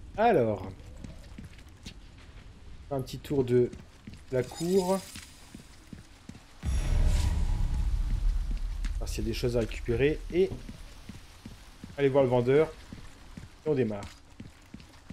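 A young man talks with animation through a close microphone, in short bursts.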